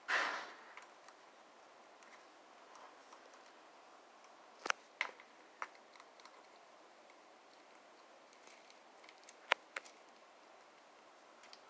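A rat nibbles and gnaws at food with small clicking sounds.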